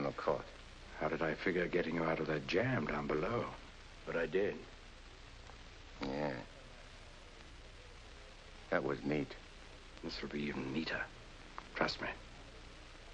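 An older man answers in a calm, low voice, close by.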